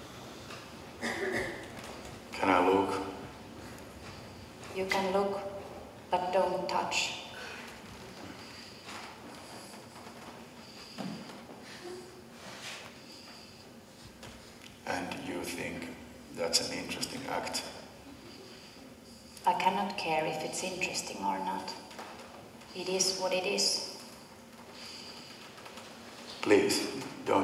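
A woman speaks theatrically, heard from across an echoing hall.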